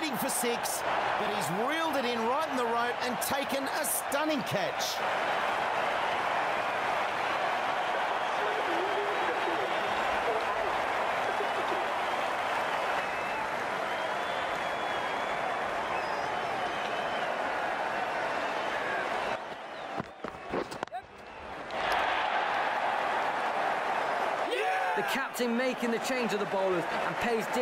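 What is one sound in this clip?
A large crowd cheers and roars steadily in a big stadium.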